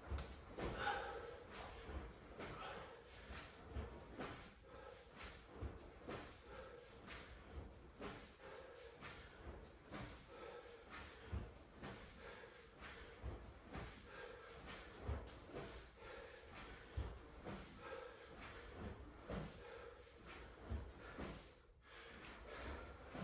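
A body thuds softly on a mat in a steady rhythm.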